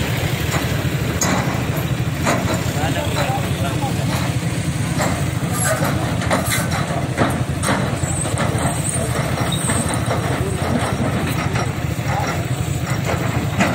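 Excavator engines rumble steadily in the distance.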